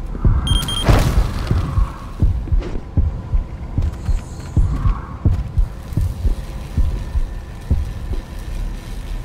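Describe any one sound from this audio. Running footsteps thump quickly on wooden boards.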